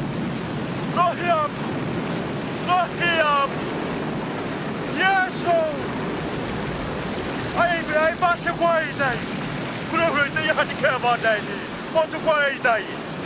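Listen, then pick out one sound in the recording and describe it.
A man cries out in distress.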